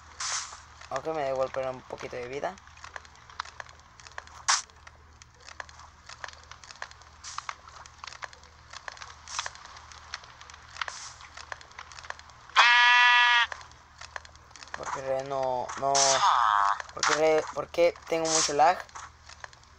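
A sheep bleats several times.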